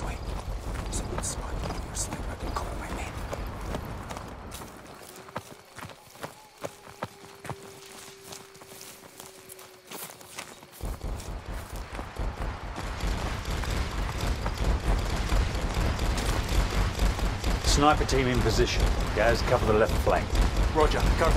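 Footsteps crunch and splash on wet ground.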